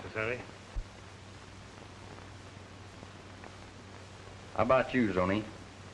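A man speaks briefly in a calm voice, heard through an old, thin-sounding recording.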